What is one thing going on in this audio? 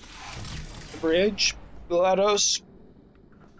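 A heavy mechanical door slides shut.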